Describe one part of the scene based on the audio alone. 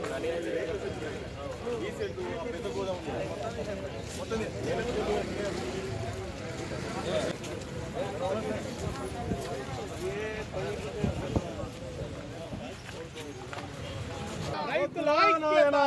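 A crowd of men chatters and murmurs outdoors nearby.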